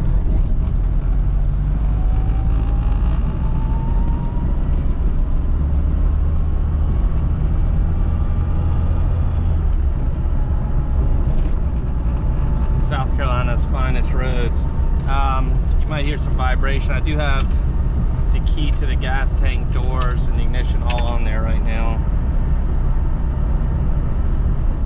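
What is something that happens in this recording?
A small car engine drones loudly from inside the cabin, revving up as the car gathers speed.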